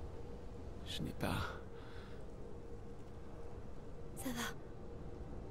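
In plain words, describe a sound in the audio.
A young woman speaks softly.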